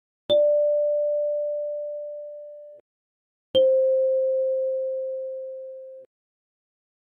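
A kalimba plucks two single notes, each ringing out and slowly fading.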